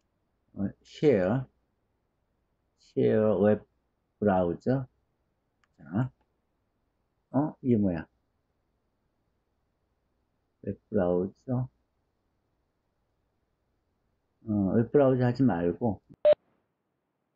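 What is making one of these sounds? A middle-aged man speaks calmly in short phrases through an online call microphone.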